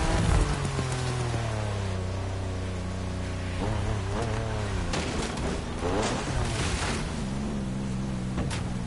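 A sports car engine revs and drones, rising and falling as it slows.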